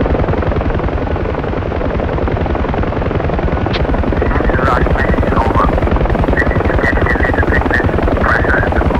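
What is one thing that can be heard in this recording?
A helicopter's rotor thumps steadily and loudly from inside the cockpit.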